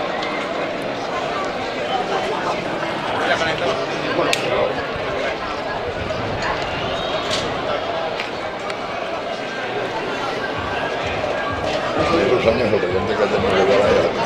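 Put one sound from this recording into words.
A crowd of people chatters and calls out nearby outdoors, growing louder toward the end.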